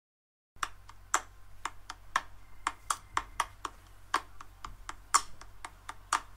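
A pencil taps quickly and unevenly against a hard surface.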